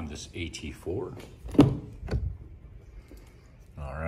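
A car door latch clicks and the door swings open.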